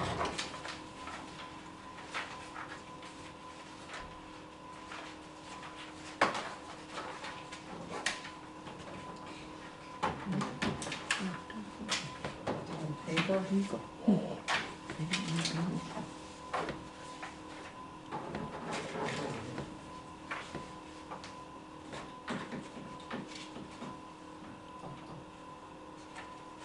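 Papers rustle and shuffle.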